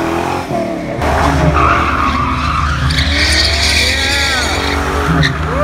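Car tyres screech on the road during a burnout.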